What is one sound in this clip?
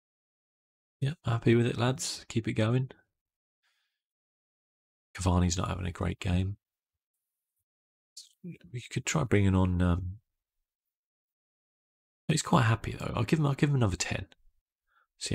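A man talks calmly and closely into a microphone, in short bursts with pauses.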